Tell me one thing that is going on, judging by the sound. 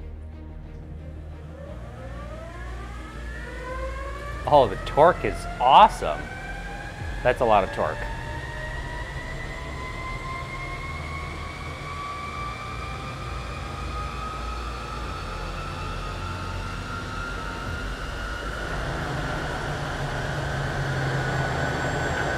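An electric motor whirs and steadily rises in pitch.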